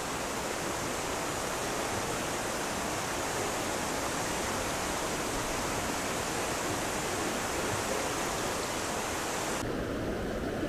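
A shallow river rushes loudly over rocks.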